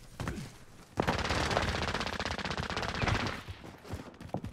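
Footsteps run up stone stairs.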